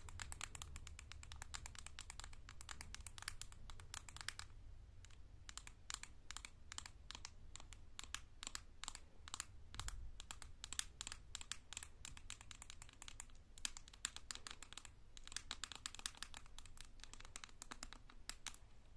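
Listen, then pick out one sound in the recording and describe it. Long fingernails tap rapidly on a plastic container, close up.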